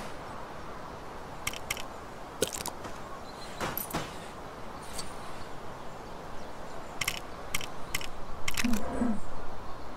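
A game menu clicks as a character is chosen.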